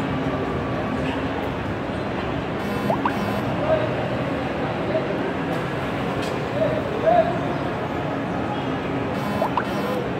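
Busy street traffic rumbles steadily below, heard from above outdoors.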